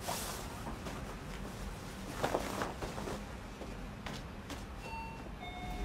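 A plastic raincoat rustles as it is handled.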